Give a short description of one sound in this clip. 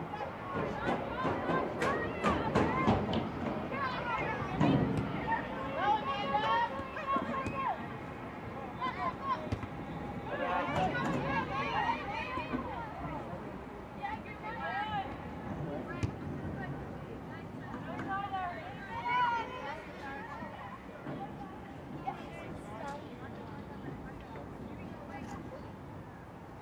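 A soccer ball is kicked with dull thuds.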